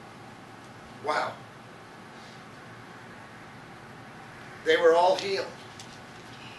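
A middle-aged man speaks slowly and solemnly into a microphone, in short bursts with long pauses.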